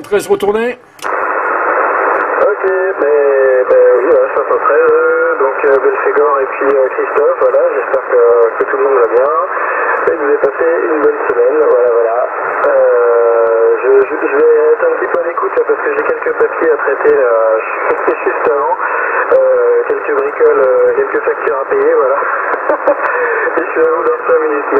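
A man talks through a crackly radio loudspeaker.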